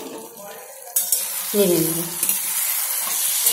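A spatula scrapes and stirs in a metal pan.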